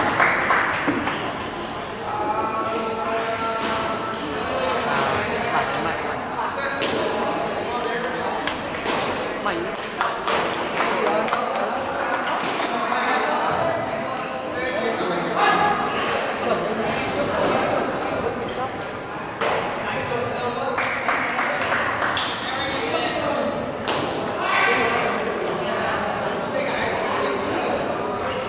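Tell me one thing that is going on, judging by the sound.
A ping-pong ball clicks back and forth across a table in quick rallies.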